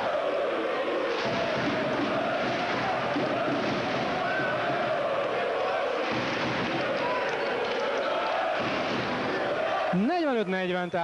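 A large crowd chants and cheers in an echoing hall.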